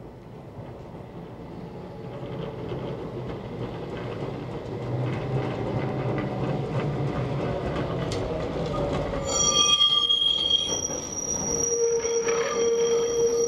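A tram rumbles closer along the rails, growing louder.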